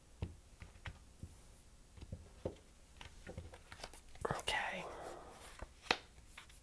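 Playing cards are gathered and shuffled with soft rustling.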